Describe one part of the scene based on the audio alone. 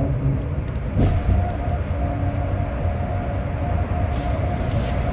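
The road noise grows into a hollow roar inside a tunnel.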